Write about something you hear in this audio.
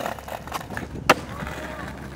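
A skateboard lands with a sharp clack on the ground.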